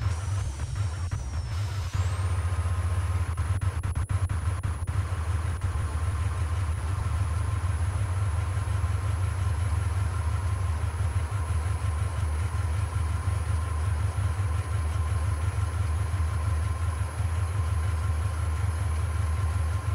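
A truck engine rumbles steadily at speed.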